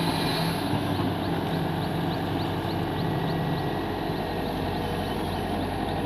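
A diesel excavator engine rumbles steadily nearby.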